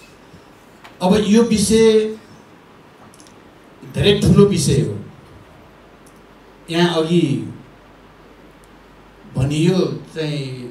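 An elderly man speaks slowly and deliberately into a microphone, in short phrases with pauses.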